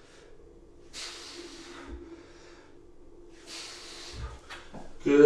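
A man breathes out hard with effort.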